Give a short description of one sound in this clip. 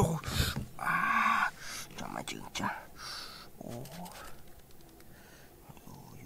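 A small trowel scrapes and digs into loose gravelly soil.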